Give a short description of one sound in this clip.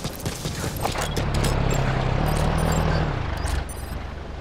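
A truck engine rumbles at a distance.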